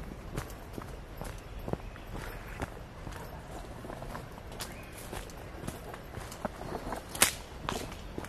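Footsteps crunch on dry leaves and twigs along a dirt path.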